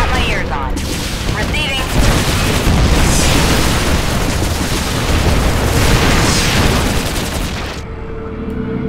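Gunfire and explosions crackle loudly.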